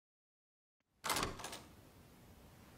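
A door opens with a short clatter.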